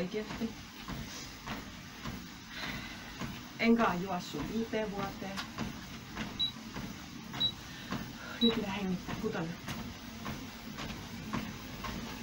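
Footsteps thud steadily on a running treadmill belt.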